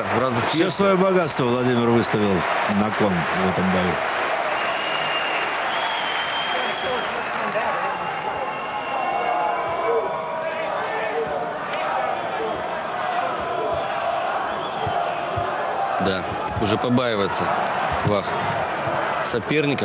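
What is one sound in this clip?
A large crowd roars and cheers in a big echoing arena.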